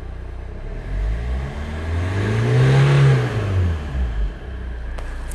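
A car engine revs up briefly and settles back down.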